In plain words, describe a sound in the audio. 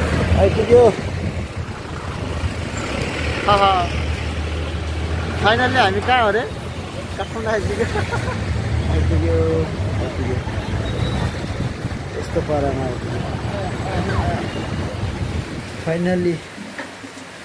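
Traffic rumbles steadily on a busy street.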